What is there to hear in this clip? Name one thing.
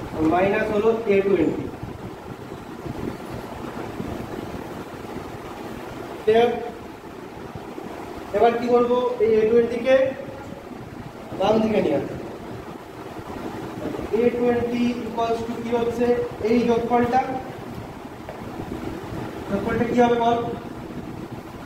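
A man speaks calmly in short phrases, close by.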